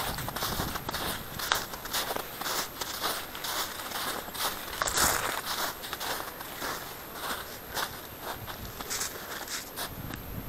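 Footsteps crunch rhythmically on snow.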